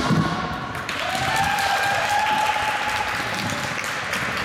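Roller skate wheels roll on a wooden floor.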